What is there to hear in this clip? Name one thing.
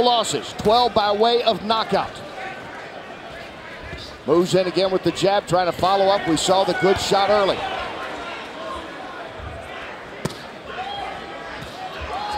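Boxing gloves thud against a boxer's body.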